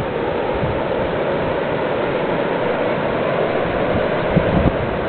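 Wind blows steadily outdoors, rustling through bushes and buffeting the microphone.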